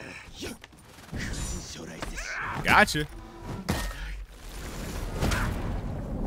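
Swords and axes clash with heavy metallic hits.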